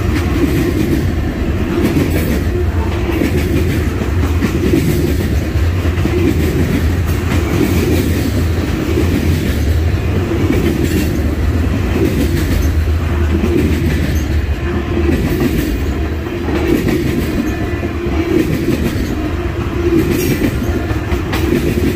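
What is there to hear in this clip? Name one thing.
Steel wheels clack over rail joints.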